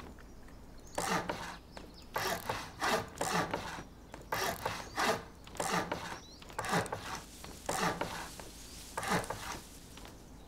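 Wooden building pieces thud and crunch into place in quick bursts.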